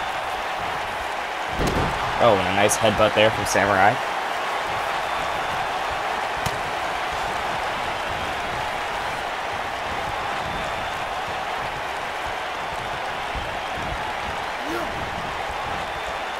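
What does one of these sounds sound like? A large crowd murmurs and cheers steadily in a big arena.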